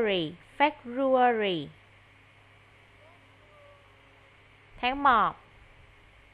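A young boy speaks loudly and with animation through an online call.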